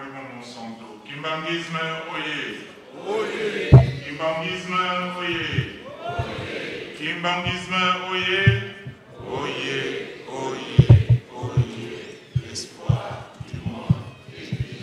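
A man sings slowly into a microphone, heard through loudspeakers.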